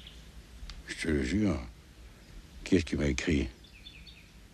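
An elderly man speaks quietly nearby.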